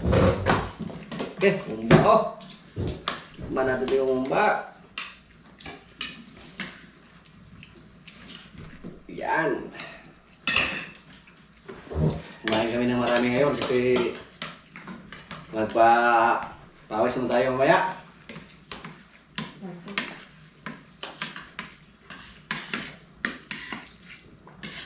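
Spoons and forks clink against plates.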